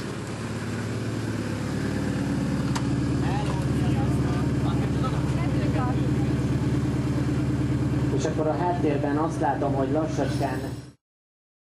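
A rally car engine idles loudly and steadily nearby.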